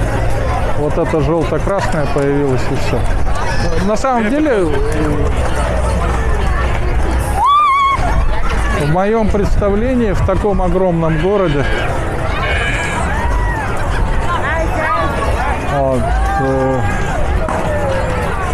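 Several people talk loudly nearby with animation.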